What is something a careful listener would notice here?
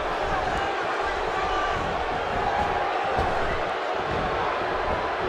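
Punches and bodies thud on a wrestling ring.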